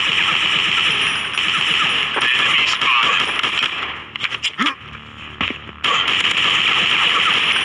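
Rapid automatic gunfire rattles.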